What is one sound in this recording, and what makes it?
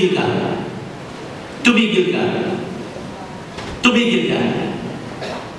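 A middle-aged man speaks with animation into a microphone, heard through loudspeakers in a large echoing hall.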